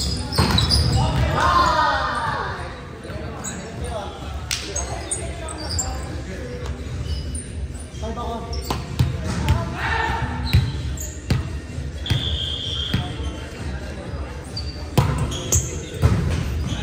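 Volleyballs thump off hands in a large echoing gym.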